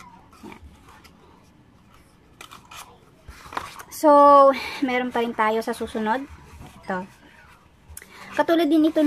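Cardboard rustles and scrapes as hands fold it.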